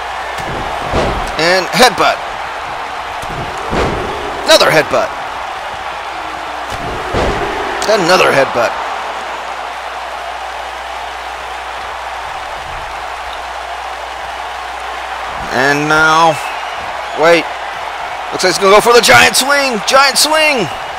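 Heavy thuds of bodies slam onto a wrestling ring mat.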